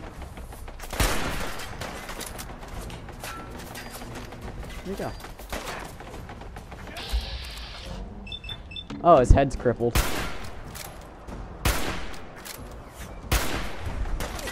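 Loud gunshots ring out one at a time, each followed by a short echo.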